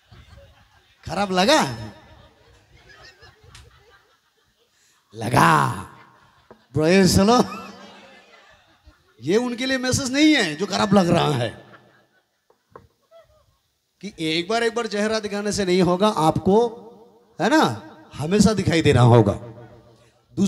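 A man speaks with animation into a microphone over loudspeakers, echoing in a room.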